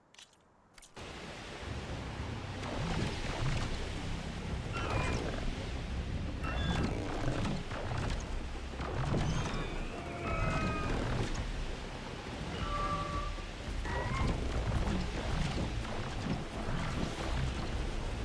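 Wind rushes and roars steadily.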